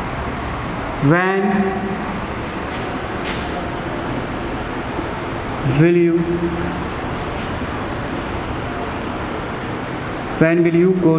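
A man speaks in short bursts, calmly and fairly close.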